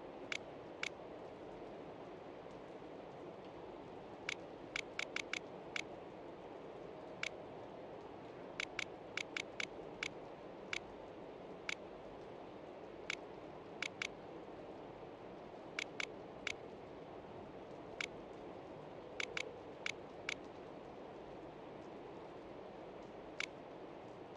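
A combination dial clicks sharply as it turns.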